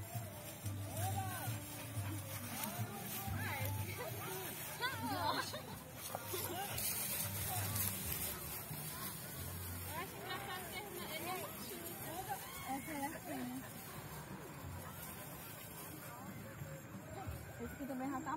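Puppies yip and whine while playing.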